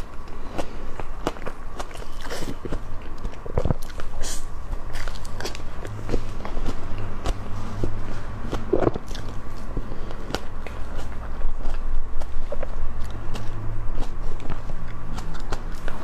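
A young woman chews and smacks her lips on soft cream cake close to a microphone.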